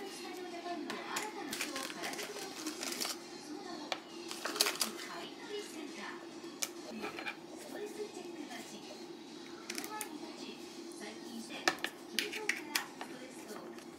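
Small plastic items click and rattle as they are handled.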